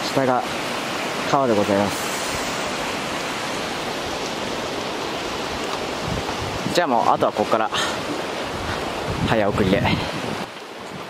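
A river rushes steadily far below.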